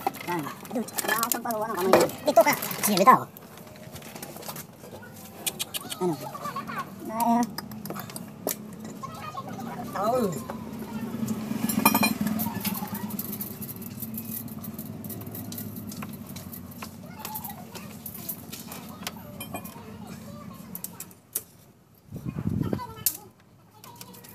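Metal engine parts clink and scrape.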